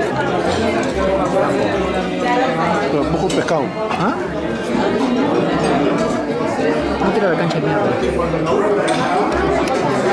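A spoon scrapes a glass cup.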